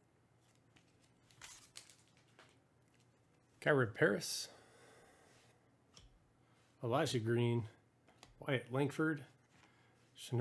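A stack of trading cards is shuffled.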